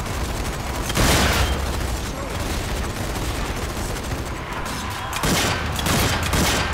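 A rifle fires with loud, booming shots.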